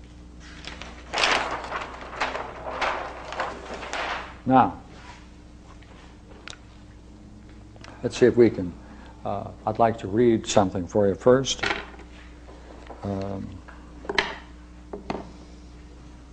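An elderly man speaks calmly, as if lecturing to a room.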